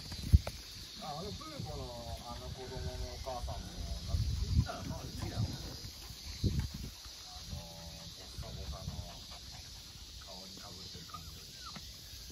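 Puppies whine and yip softly close by.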